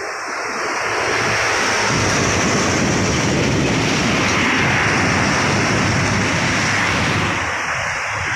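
A large truck rumbles past close by.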